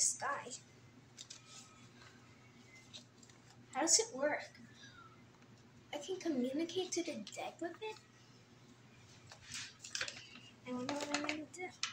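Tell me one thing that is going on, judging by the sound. Paper rustles and crinkles in a young girl's hands.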